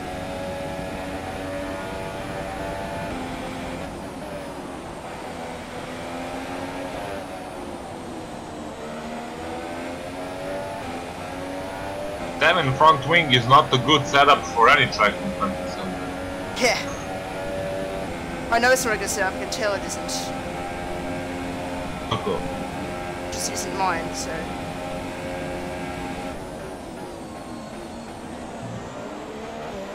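A racing car engine screams steadily, rising and falling in pitch as the car speeds up and brakes.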